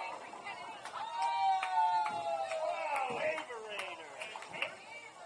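A group of young people cheers and whoops loudly.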